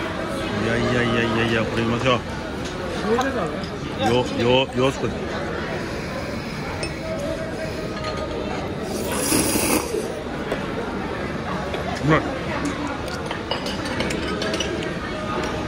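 Men and women chatter in the background of a busy, noisy room.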